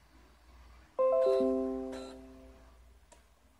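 A laptop plays a short notification chime.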